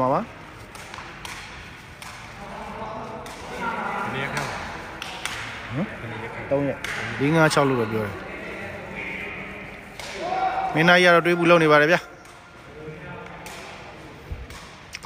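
A takraw ball is kicked back and forth, thudding in a large echoing hall.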